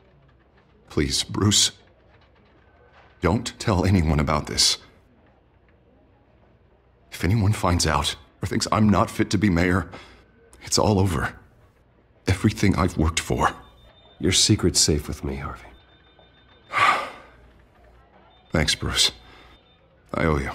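A man speaks in a low, serious voice, up close.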